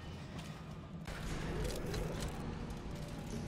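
Heavy metal doors slide open with a mechanical rumble.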